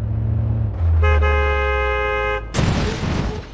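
A bus horn blares.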